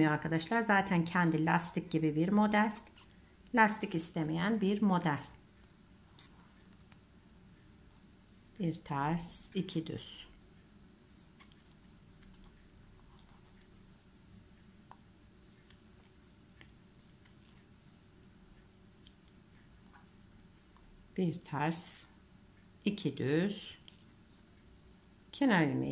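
Knitting needles click and scrape softly against each other.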